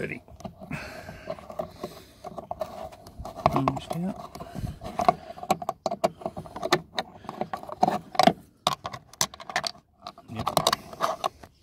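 A metal hex key scrapes and clicks against a screw in plastic trim.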